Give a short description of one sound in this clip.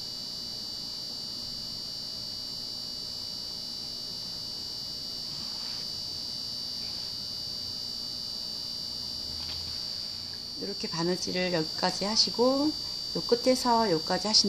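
Thread rustles softly as it is pulled through fabric.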